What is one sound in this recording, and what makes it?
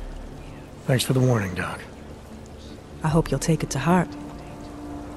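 A woman speaks calmly in reply.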